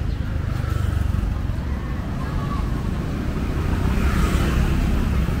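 Motorbikes and cars pass by on a road.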